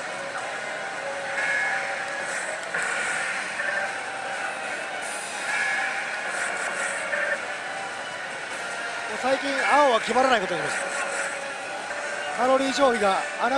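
A slot machine plays bright electronic jingles and chimes.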